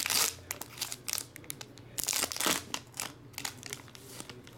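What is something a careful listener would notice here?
Foil wrappers crinkle and rustle as they are torn open.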